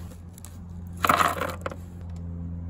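Brass cartridges spill and clatter onto wooden boards.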